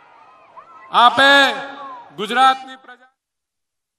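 A man speaks through a microphone over a loudspeaker.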